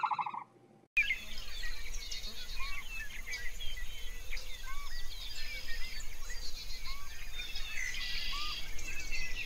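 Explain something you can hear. Geese honk loudly nearby.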